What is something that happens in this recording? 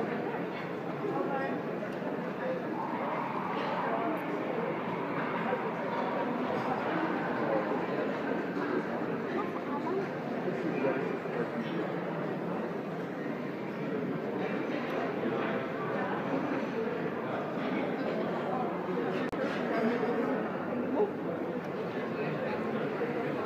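A crowd murmurs and chatters steadily all around in a busy echoing hall.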